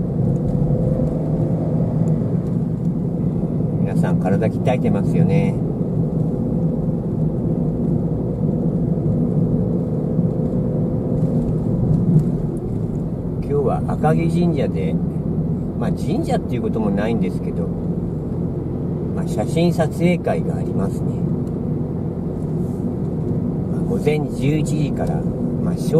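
Tyres roll steadily on a paved road.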